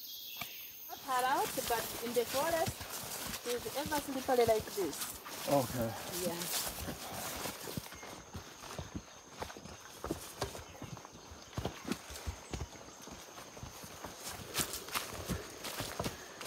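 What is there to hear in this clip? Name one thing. Footsteps crunch through undergrowth on a forest trail.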